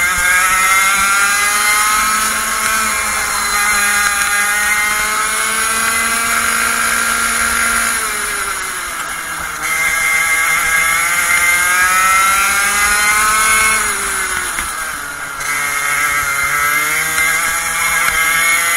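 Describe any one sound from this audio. A kart engine whines loudly close by, rising and falling in pitch as it speeds up and slows for the bends.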